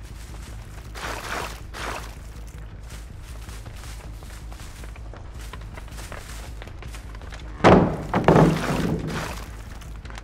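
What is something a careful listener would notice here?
A metal trap clanks and rattles as it is set on the ground.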